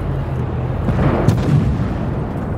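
A shell explodes with a loud boom.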